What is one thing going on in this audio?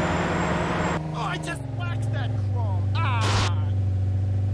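Tyres screech and skid.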